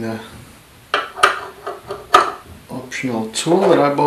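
Metal parts click and knock as they are fitted together.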